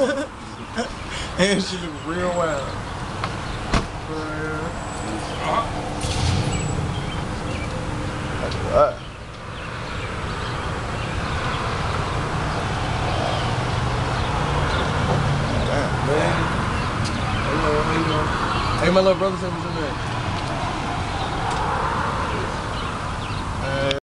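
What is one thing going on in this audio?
Young men talk and call out nearby outdoors.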